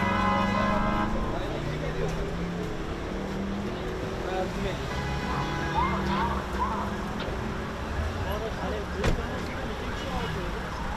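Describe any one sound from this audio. Car engines idle and traffic hums in a street.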